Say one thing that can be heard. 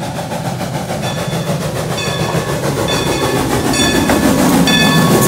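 Steel wheels squeal and clank on the rails as a train draws near.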